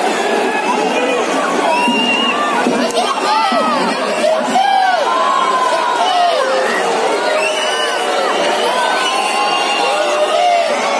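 A large stadium crowd chants and sings.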